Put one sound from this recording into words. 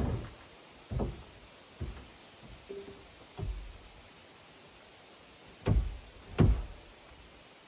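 A man knocks on wood with sharp thuds.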